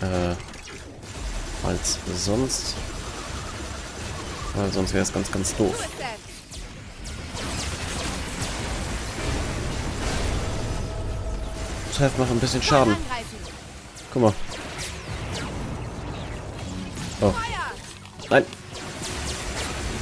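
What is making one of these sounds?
Guns fire bursts of energy shots.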